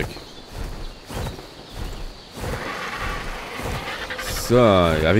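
Large wings flap in slow, steady beats.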